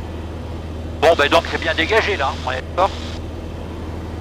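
A young man speaks briefly over a headset intercom.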